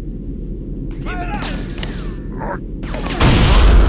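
A plasma weapon fires in sizzling, whining bursts.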